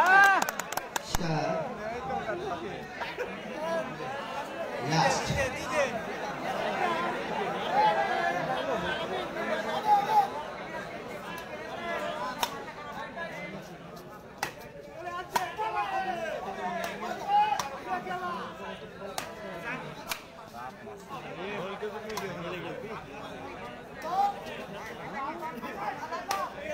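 A crowd of spectators shouts and chatters outdoors.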